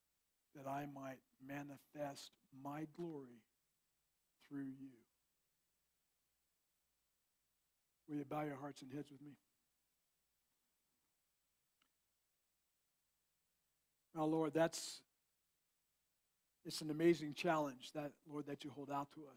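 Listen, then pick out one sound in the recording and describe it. An elderly man speaks calmly through a microphone, in pauses.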